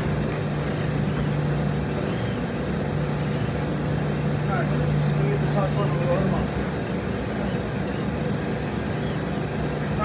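Clothes rustle as laundry is loaded into a front-loading washer.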